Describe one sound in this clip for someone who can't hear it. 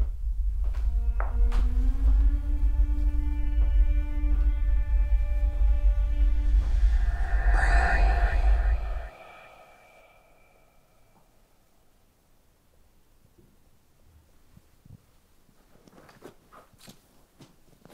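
Things bump and rustle as a woman rummages through a room.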